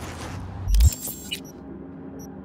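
A game menu gives a short whooshing click as a map opens.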